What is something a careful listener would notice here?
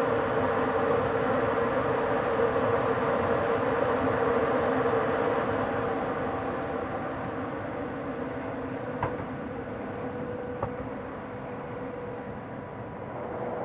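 A train rumbles steadily along the rails, slowly quieting.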